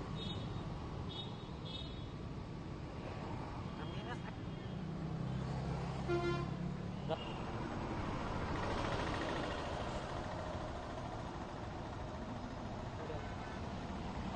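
Traffic rumbles steadily on a busy street outdoors.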